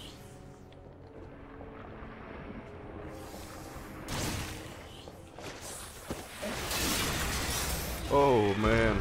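A huge snake slithers across the floor with a heavy scraping rustle.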